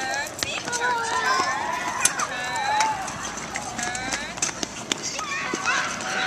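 Small plastic wheels rumble on pavement.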